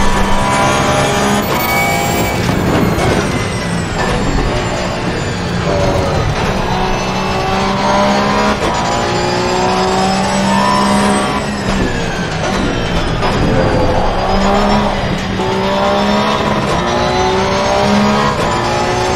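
A racing car engine roars loudly, revving up through the gears and dropping as it brakes.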